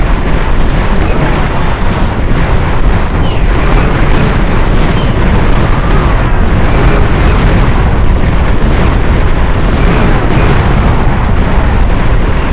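Rifles crackle in a rapid battle.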